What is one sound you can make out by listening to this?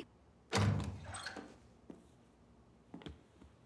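A door creaks open.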